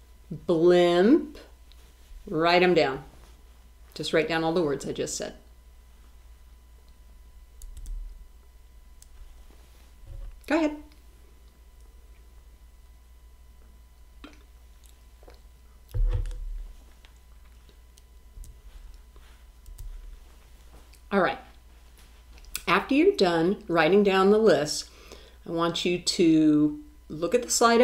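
A woman speaks slowly and clearly into a close microphone, pausing often.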